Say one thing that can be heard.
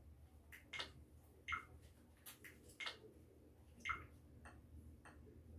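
Short electronic menu blips sound from a television.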